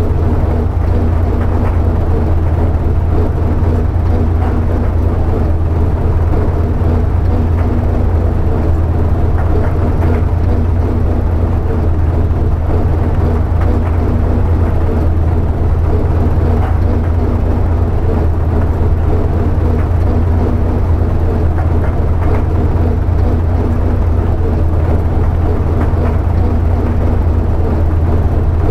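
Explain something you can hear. A tractor engine rumbles steadily at idle.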